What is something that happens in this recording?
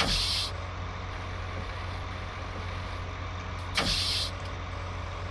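A forestry crane hisses as it moves.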